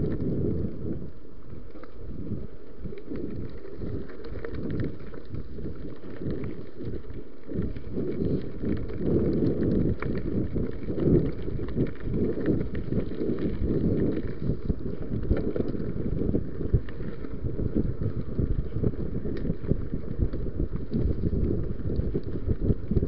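Wind rumbles steadily against a microphone on a moving bike.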